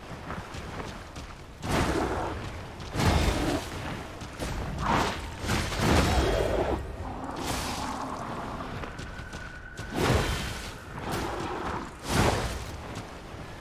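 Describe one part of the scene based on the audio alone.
A monster roars and growls.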